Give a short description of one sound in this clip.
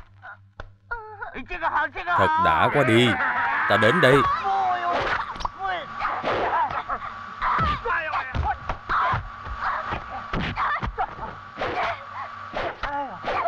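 A man growls and shouts loudly.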